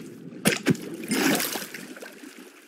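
Water splashes as something breaks the surface.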